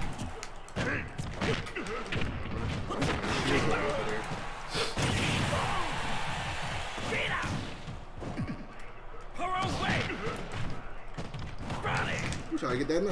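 Video game fighters trade blows with sharp hit sounds.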